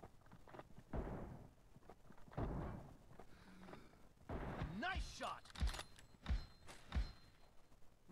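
Rifle shots ring out in short bursts.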